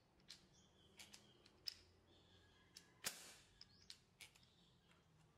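Small objects click and clatter on a table.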